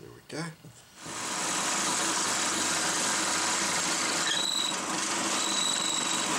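A drill bores steadily through wood with a loud whirring roar.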